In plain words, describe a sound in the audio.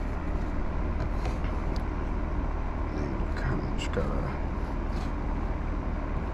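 A fabric cover rubs and stretches over a steering wheel.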